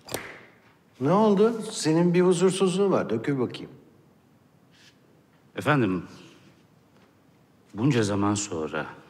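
A middle-aged man speaks in a low, serious voice close by.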